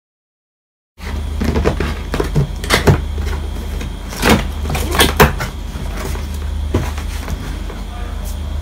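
A cardboard box knocks and scrapes as it is handled.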